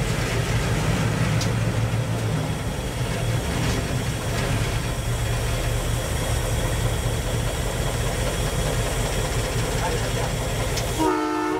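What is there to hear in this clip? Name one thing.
A diesel locomotive engine rumbles steadily up close.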